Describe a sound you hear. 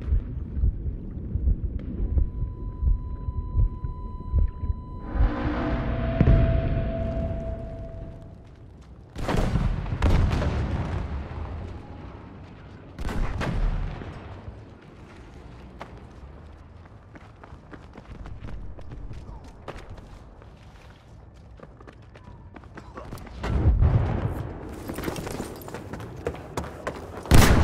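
Gunfire and explosions boom in the distance.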